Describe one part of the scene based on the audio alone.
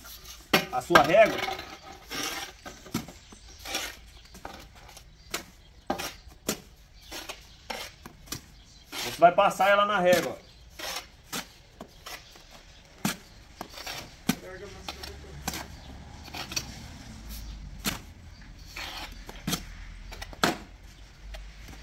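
A trowel scrapes and knocks wet mortar in a wheelbarrow.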